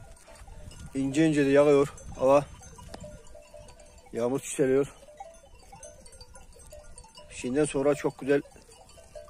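Sheep bleat loudly nearby.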